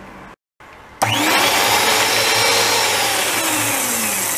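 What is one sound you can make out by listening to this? An electric mixer whirs loudly as its beaters spin.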